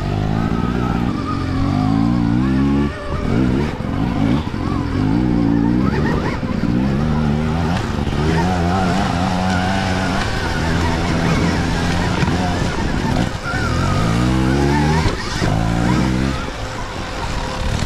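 Dirt bike engines rev and whine up close, rising and falling in pitch.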